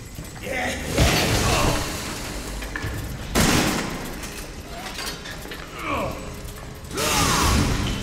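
A shotgun fires with loud booms.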